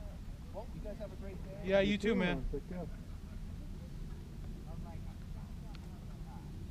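A man talks nearby outdoors, sometimes raising his voice.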